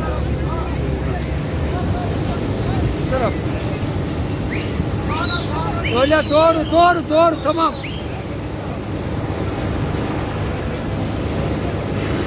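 A strong jet of water hisses and sprays steadily.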